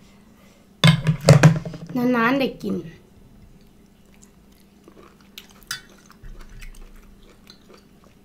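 A woman crunches and slurps food close to a microphone.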